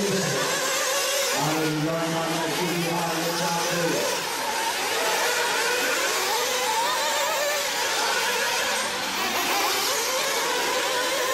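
Small electric motors of model race cars whine high and rev up and down.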